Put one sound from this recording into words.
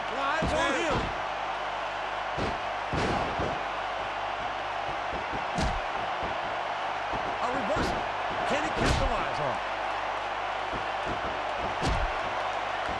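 Heavy bodies thud onto a wrestling mat.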